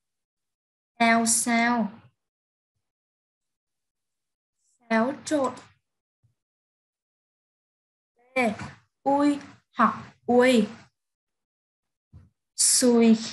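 A woman speaks slowly and clearly over an online call, pausing between words.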